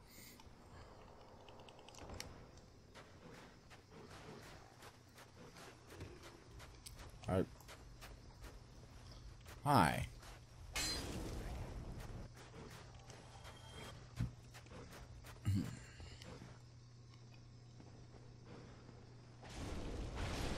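Armoured footsteps clank on stone as a knight runs.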